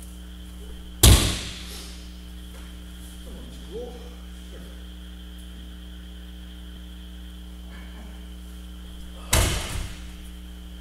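A person slams onto a mat with a heavy thud in a large echoing hall.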